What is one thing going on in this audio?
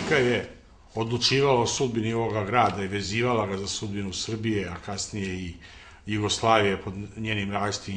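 An elderly man speaks calmly and steadily, close to a microphone.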